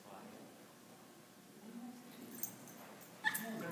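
A dog's paws patter softly on loose ground.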